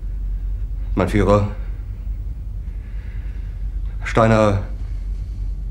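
A middle-aged man says a short word quietly.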